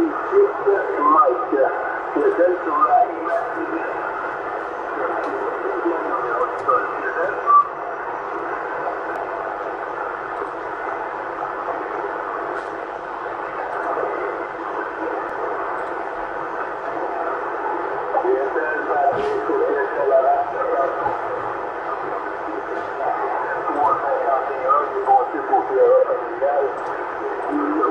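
Static hisses from a CB radio loudspeaker.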